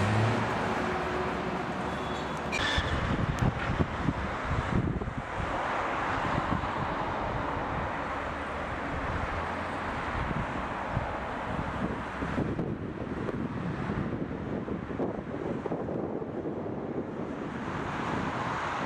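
Traffic hums steadily on a road below.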